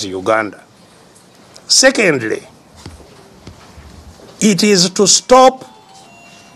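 An elderly man speaks with emphasis in short bursts.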